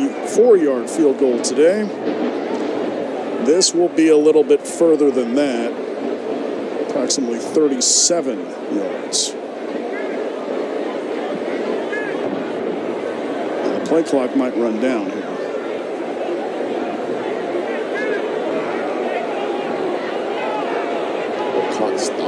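A large crowd murmurs outdoors in a stadium.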